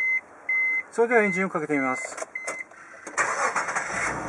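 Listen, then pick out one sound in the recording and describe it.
A car engine cranks and starts up.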